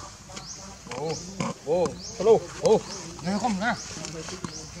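Young monkeys squeal in short high cries.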